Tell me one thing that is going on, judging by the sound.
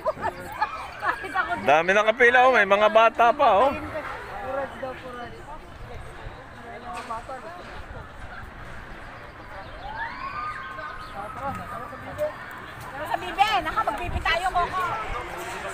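A crowd of adults and children chatters nearby outdoors.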